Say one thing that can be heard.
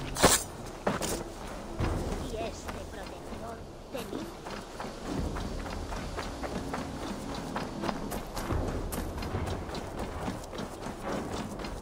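Footsteps run quickly over a dirt path.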